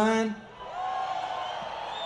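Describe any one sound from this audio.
An acoustic guitar is strummed through an amplifier.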